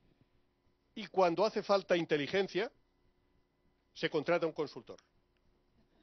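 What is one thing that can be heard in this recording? A middle-aged man speaks with animation into a microphone, in pauses.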